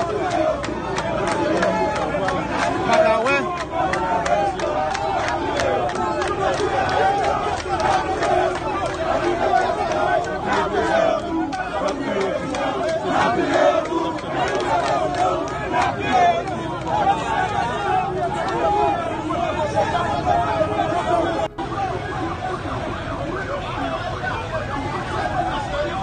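A large crowd of men and women shouts excitedly outdoors.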